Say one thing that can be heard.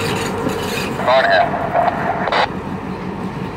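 Steel wheels grind and squeal on rails.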